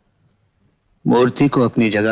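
An older man answers.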